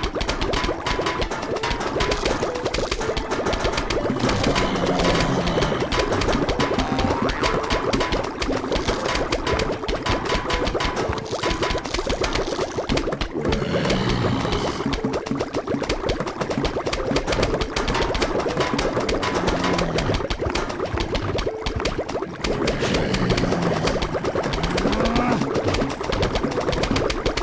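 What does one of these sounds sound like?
Cartoon plants fire rapid, popping shots without pause.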